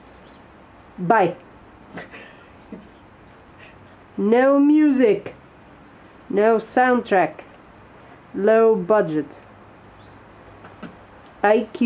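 A cat meows repeatedly, in short and drawn-out cries.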